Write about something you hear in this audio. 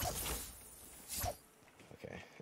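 A pickaxe thuds against wood.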